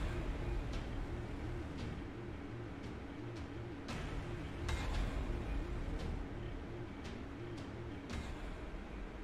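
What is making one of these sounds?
A game countdown timer ticks once a second.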